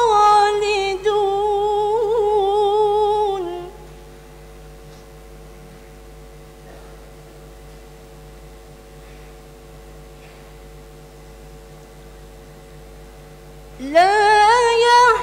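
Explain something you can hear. A young woman chants a melodic recitation into a microphone, with long held notes and pauses.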